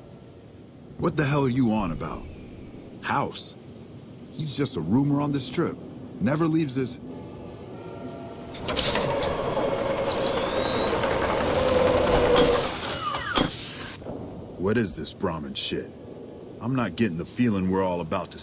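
A middle-aged man speaks in a gruff tone.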